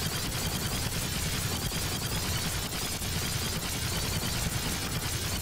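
A video game character fires rapid splattering shots.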